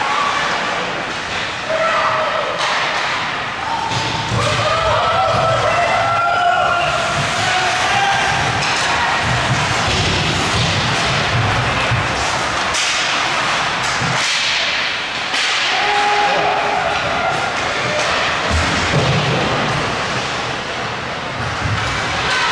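Skate blades scrape and hiss across ice.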